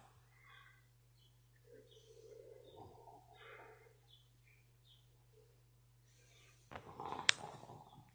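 A man speaks calmly and quietly over an online call.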